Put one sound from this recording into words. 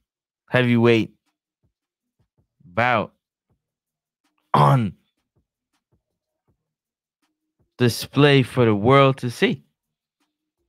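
A young man speaks into a microphone close up, in short, calm bursts with pauses between them.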